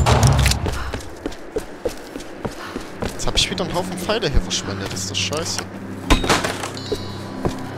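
Footsteps crunch on stone and dirt.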